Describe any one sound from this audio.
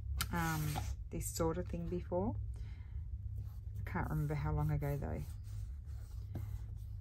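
Paper rustles as it is pressed down by hand.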